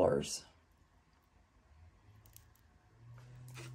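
Stone beads clink softly as a necklace is set down.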